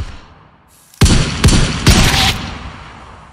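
A rifle fires sharp, loud shots, each with a short echoing tail.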